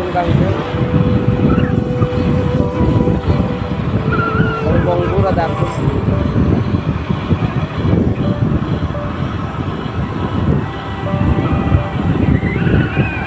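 Wind buffets and rumbles steadily past a moving vehicle.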